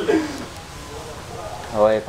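A boy strums an acoustic guitar.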